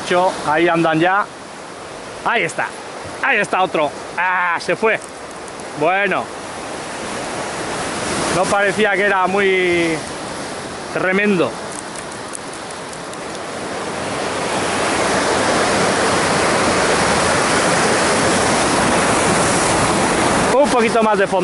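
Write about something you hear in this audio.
Waves crash and surge against rocks close by.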